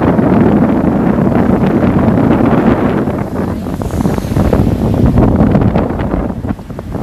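Waves wash and break onto a shore.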